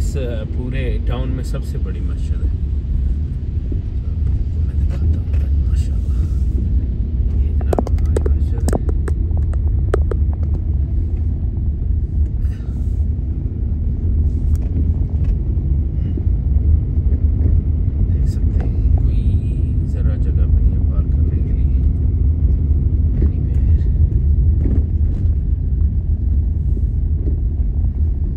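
Tyres hiss on the wet road.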